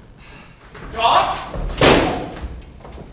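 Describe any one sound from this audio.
A door slams shut.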